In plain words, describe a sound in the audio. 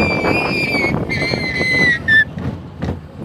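A young girl squeals with delight close by.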